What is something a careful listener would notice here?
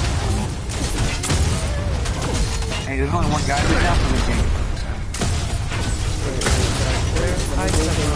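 Energy weapons fire in rapid buzzing blasts.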